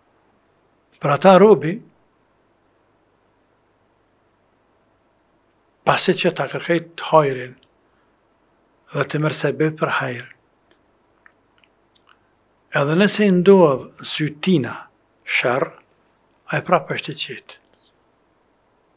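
A middle-aged man speaks with animation into a close microphone, pausing between phrases.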